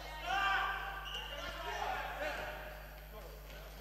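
A ball bounces on a wooden floor in a large echoing hall.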